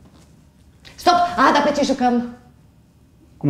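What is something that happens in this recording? A woman calls out with expression in a large room.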